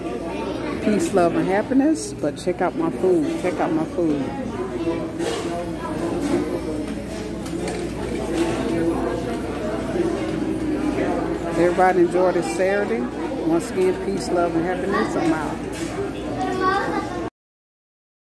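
A middle-aged woman talks close to a phone microphone with animation.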